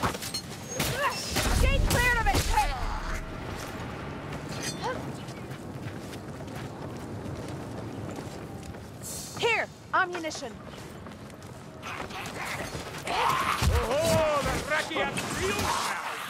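Creatures shriek in pain.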